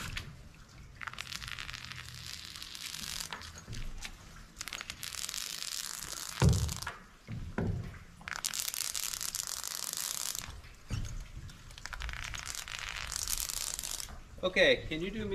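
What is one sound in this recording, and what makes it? A foam gun sprays with a hiss in repeated bursts.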